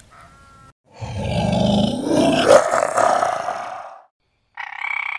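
A polar bear groans deeply.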